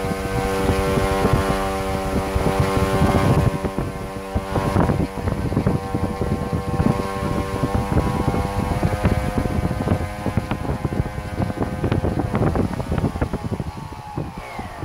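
A small electric motor whines steadily at high speed, its pitch shifting slightly and winding down at the end.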